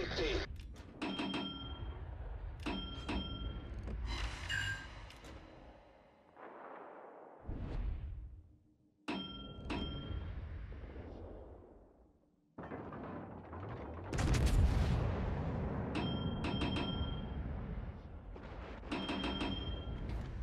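Heavy naval guns fire in loud booming volleys.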